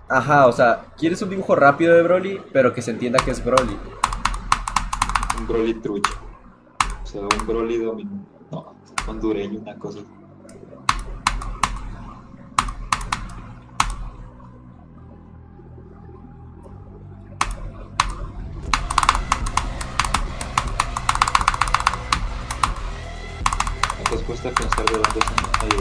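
Keyboard keys click rapidly.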